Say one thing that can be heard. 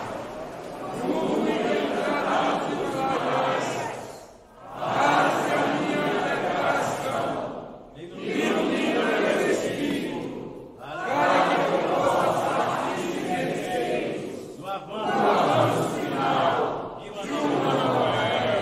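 A man leads a prayer aloud in long phrases, with short pauses between them.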